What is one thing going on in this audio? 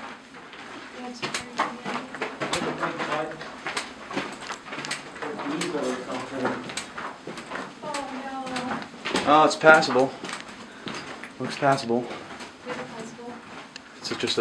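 A man speaks close by in an echoing tunnel.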